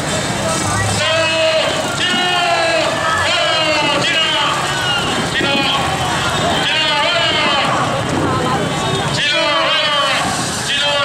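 Men shout loudly and with excitement nearby.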